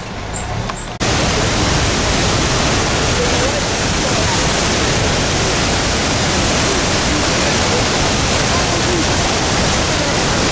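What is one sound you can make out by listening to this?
A river rushes loudly over rocks nearby.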